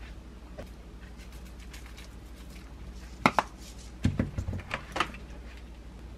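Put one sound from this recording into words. Seeds patter lightly as they are shaken out of a container.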